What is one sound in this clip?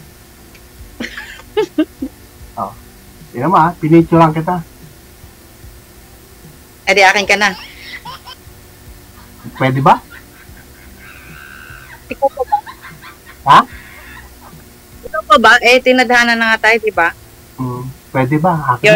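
A middle-aged woman talks and laughs over an online call.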